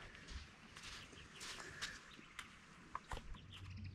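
A jerrycan clicks and knocks as it is handled.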